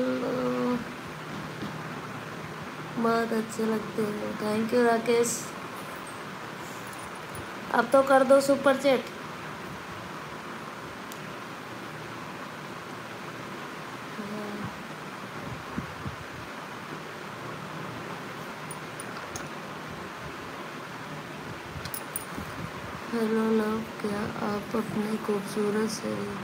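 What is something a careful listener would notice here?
A woman talks in bursts, close to a phone microphone.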